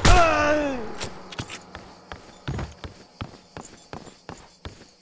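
Footsteps run steadily on a hard floor.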